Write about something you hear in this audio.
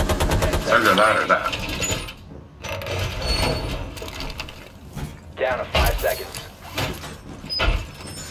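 A heavy metal panel clanks and bangs into place.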